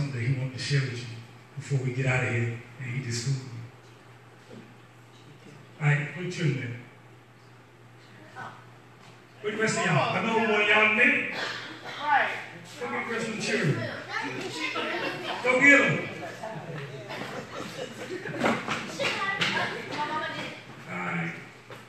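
A man preaches into a microphone over loudspeakers in an echoing hall, with pauses and bursts of energy.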